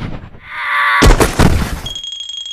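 Something small thuds onto a wooden floor.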